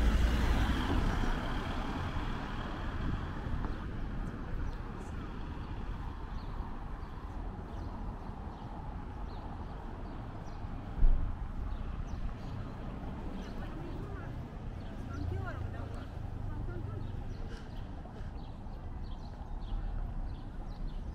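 A car engine hums steadily as the car drives along a city street.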